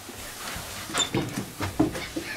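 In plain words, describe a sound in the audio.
A wooden latch clicks as a hand turns it.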